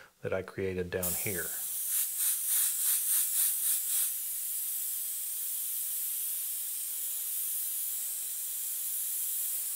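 An airbrush hisses steadily as it sprays.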